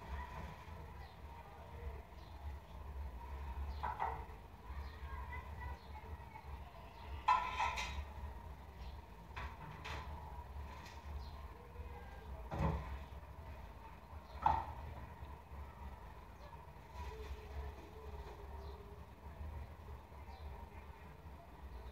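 Hands rustle through braided hair.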